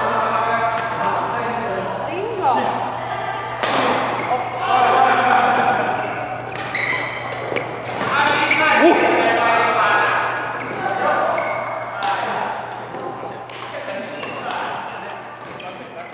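Adult men and women call out to each other across an echoing hall.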